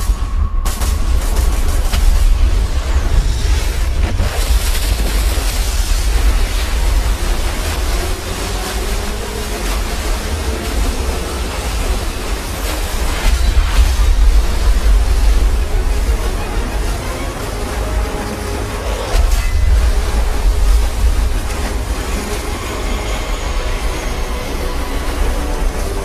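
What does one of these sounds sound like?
Loud explosions rumble and boom.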